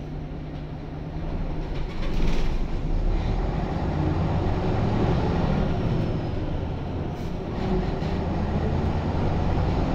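A bus interior rattles and clatters over the road.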